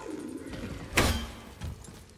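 A wooden crate smashes apart.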